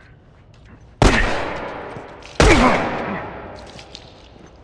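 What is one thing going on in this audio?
A gun fires two loud shots that echo and fade.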